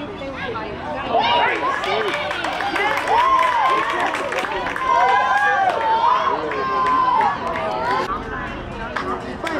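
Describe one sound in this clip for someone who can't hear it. Young boys and a man shout and cheer excitedly outdoors.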